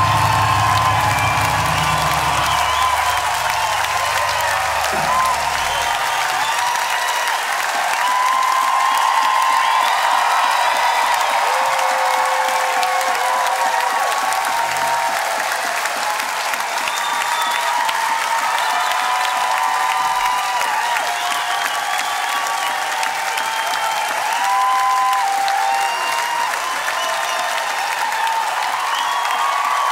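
A band plays live music in a large hall.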